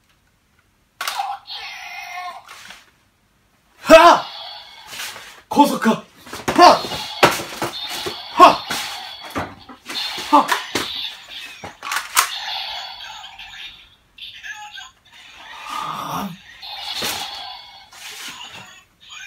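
A toy sword plays loud electronic sound effects and music.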